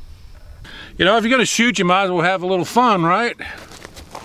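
An older man speaks calmly, close to the microphone.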